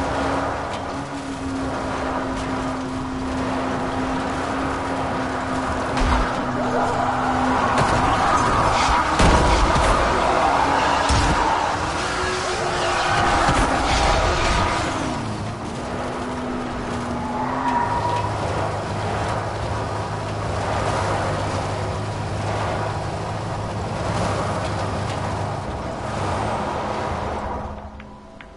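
A car engine roars and revs steadily.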